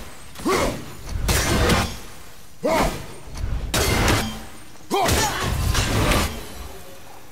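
Heavy blows thud and crash in a fight.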